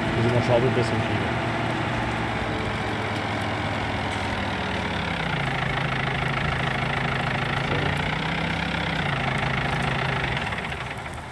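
A tractor engine hums steadily, then drops to a lower idle as it slows.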